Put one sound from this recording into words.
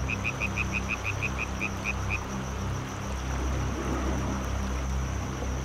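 Water splashes and churns around a surfacing whale.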